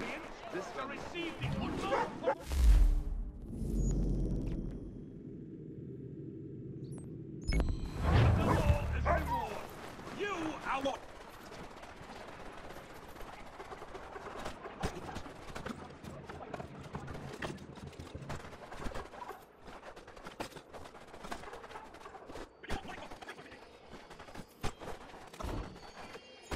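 Quick footsteps crunch on snow.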